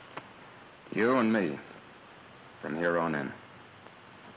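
A young man answers briefly.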